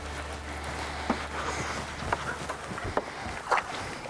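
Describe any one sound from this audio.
Water splashes as a fish is netted.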